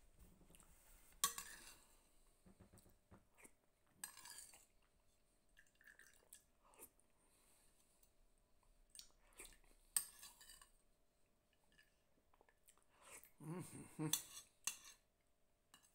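A metal spoon clinks and scrapes against a plate.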